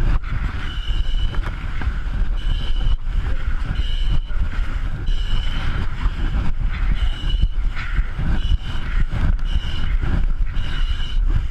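Heavy jacket fabric rustles and rubs close by.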